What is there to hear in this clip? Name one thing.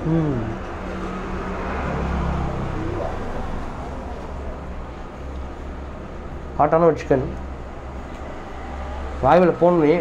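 A young man chews food noisily.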